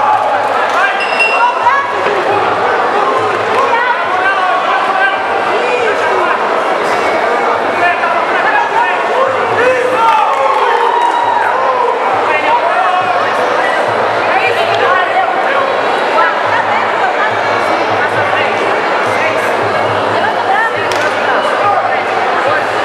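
A crowd talks and shouts in an indoor hall.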